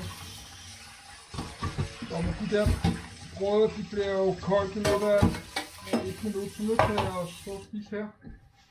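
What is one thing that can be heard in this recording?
Water runs from a tap into a sink.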